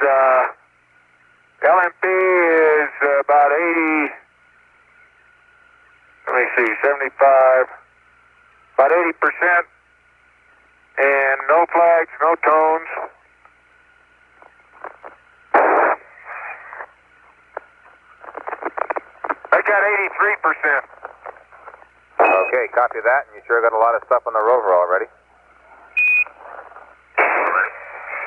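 A man speaks in short bursts over a crackly, narrow radio link.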